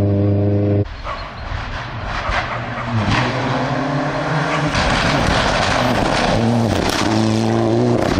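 A second rally car engine revs hard and pops as it approaches and passes.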